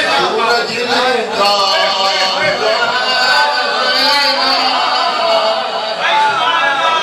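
An elderly man recites with animation into a microphone.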